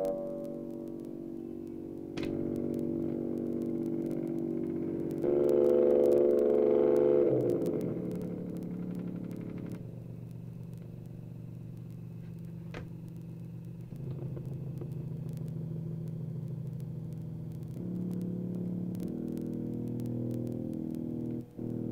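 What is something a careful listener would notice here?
A keyboard plays sustained chords that change every few seconds.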